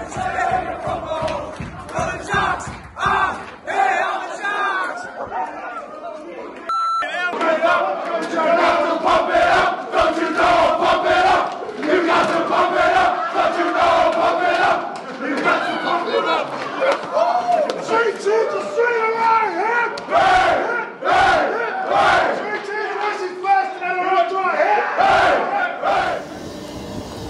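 A group of young men shout and cheer loudly in an echoing room.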